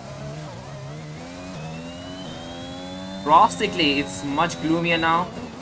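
A racing car engine whines loudly, rising in pitch as it speeds up through the gears.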